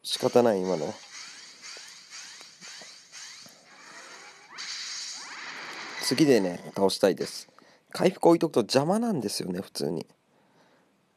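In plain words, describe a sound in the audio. Whooshing and crashing attack effects play in bursts.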